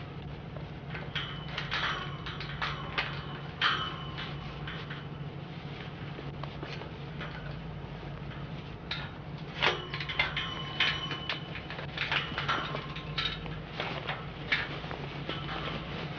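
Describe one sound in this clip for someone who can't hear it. A metal gate rattles and clanks.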